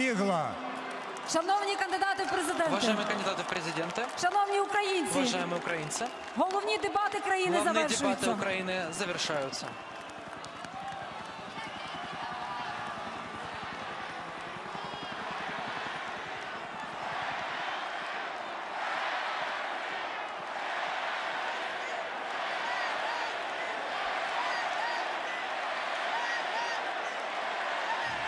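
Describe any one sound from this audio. A large crowd sings together, echoing through an open stadium.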